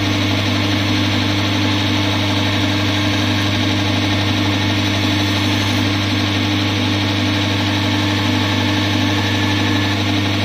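A knife blade grinds against a spinning grinding wheel with a rasping hiss.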